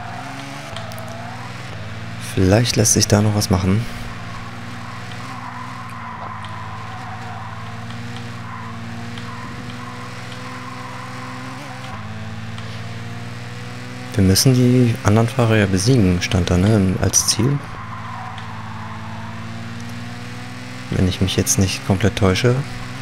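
A racing car engine drones steadily and rises in pitch as the car speeds up.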